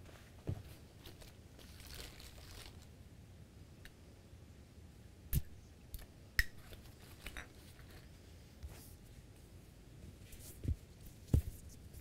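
Small bottles and objects clink and knock close by.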